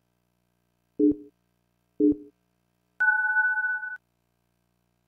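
Two short electronic beeps sound, followed by a longer, higher tone.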